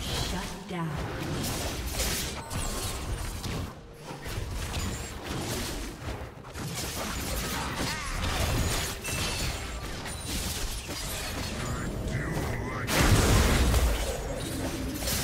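Game spells burst and crackle in a fight.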